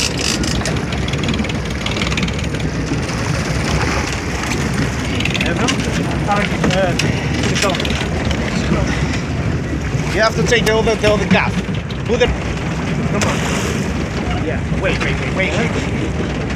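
Water splashes as a large fish thrashes beside a boat.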